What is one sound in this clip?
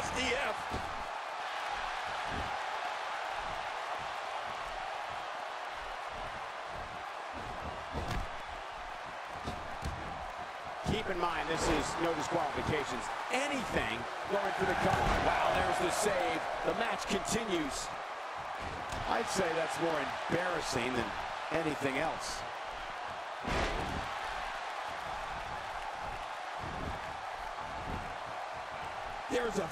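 A large arena crowd roars and cheers.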